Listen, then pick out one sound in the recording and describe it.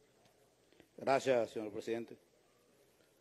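A man speaks nearby in a large hall.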